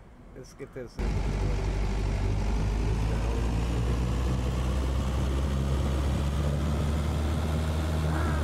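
A fire engine's motor roars loudly and revs up steadily.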